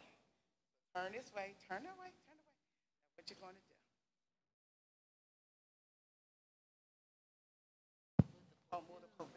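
A woman speaks with feeling into a microphone.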